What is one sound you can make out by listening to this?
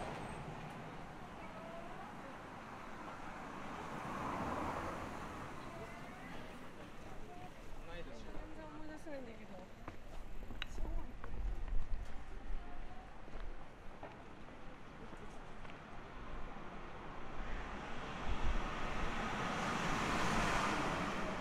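A busy street murmurs with distant voices and traffic.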